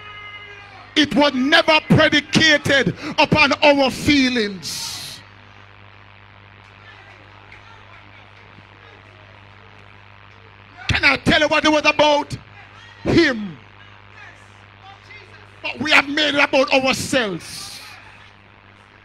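An elderly man preaches with fervour through a microphone in a reverberant hall, in loud bursts with long pauses.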